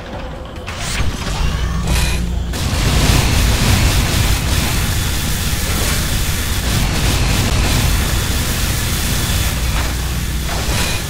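An energy gun fires in rapid bursts.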